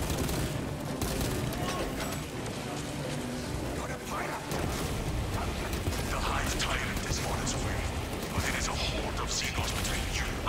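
Heavy gunfire blasts rapidly.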